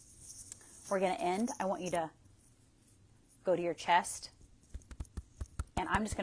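A woman speaks calmly and close to the microphone, in short bursts with pauses.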